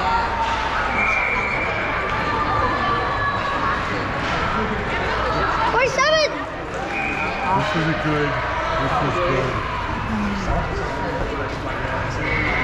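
Hockey sticks click and clack against the puck.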